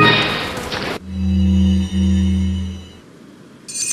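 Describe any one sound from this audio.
A deep, humming menu tone sounds as a game menu opens.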